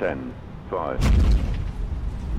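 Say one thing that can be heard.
Aircraft wheels touch down on a runway with a thump.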